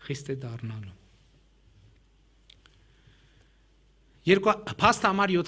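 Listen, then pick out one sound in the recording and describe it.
A middle-aged man speaks calmly into a microphone in a large hall.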